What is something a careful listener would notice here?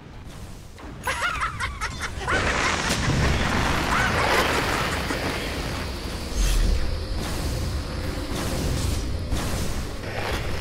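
Magic spells burst and crackle in a game.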